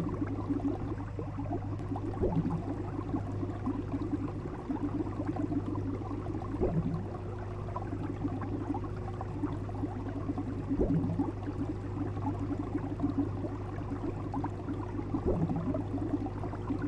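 Water bubbles and gurgles steadily in a fish tank.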